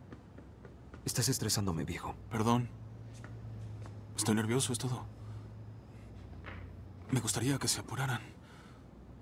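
A young man speaks calmly and quietly.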